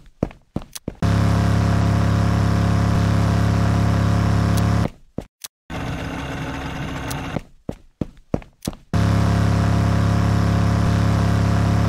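A snowmobile engine hums steadily.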